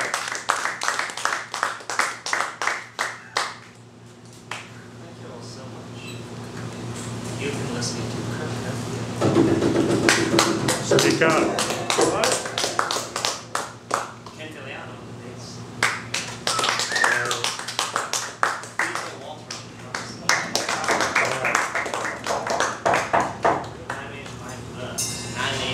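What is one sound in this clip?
Drums and cymbals play a lively beat.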